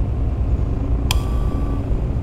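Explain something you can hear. A light switch clicks.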